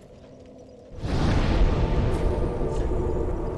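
A fire flares up with a loud whoosh and then crackles steadily.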